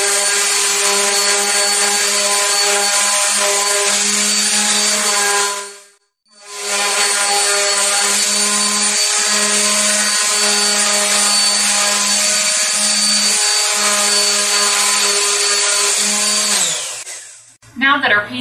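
An electric orbital sander whirs steadily, stopping briefly and then winding down.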